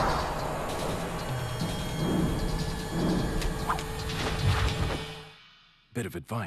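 A fight scuffles with thuds and swooshes.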